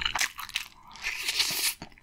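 Crispy fried chicken crunches as a young woman bites into it.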